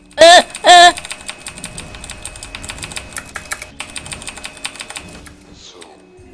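Electronic zaps and clicks rattle quickly.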